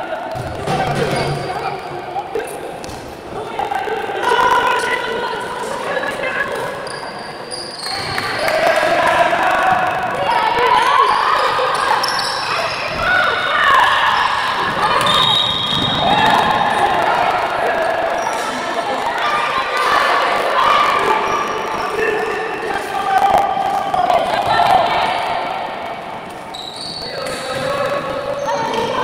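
A woman shouts instructions loudly in an echoing indoor hall.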